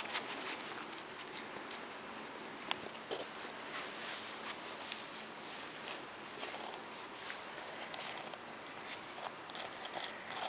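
A raccoon rustles and scratches in dry straw close by.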